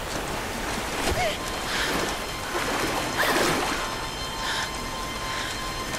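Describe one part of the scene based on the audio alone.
A young woman grunts and gasps with effort.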